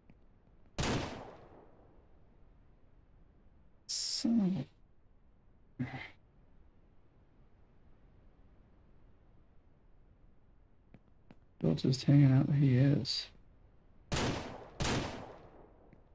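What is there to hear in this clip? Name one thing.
Pistol shots ring out one at a time.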